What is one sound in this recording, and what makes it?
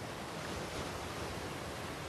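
Small waves wash gently onto a rocky shore.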